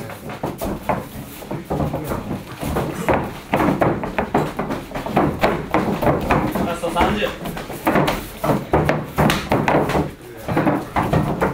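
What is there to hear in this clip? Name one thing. Boxing gloves thud in quick bursts of punches.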